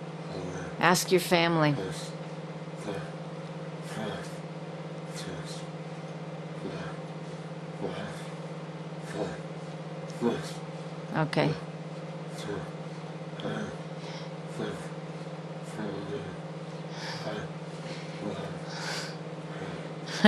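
A middle-aged man talks calmly and close by.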